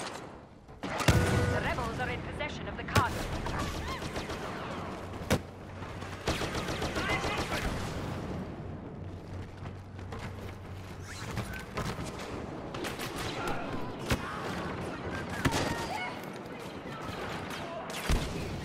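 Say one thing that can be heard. Blaster shots fire in sharp bursts.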